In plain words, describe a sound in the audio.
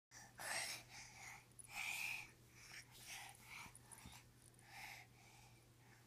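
A baby babbles and coos close by.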